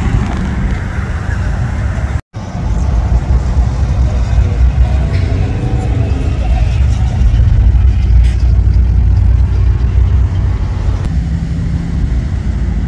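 Car and truck engines rumble as vehicles cruise slowly past.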